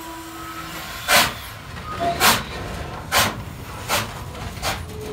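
A steam locomotive chuffs slowly in loud, even bursts of steam.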